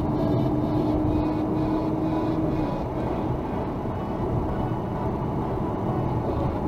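A car engine hums steadily.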